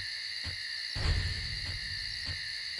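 A magic spell bursts with a sparkling whoosh.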